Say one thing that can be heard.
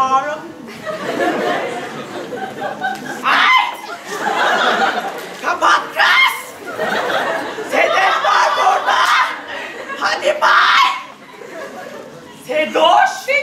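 A young woman speaks loudly and expressively in an echoing hall.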